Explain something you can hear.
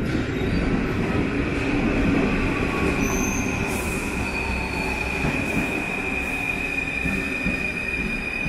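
Train brakes squeal with a steady high whine.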